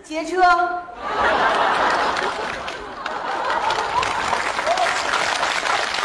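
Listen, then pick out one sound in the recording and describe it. A large audience laughs and applauds.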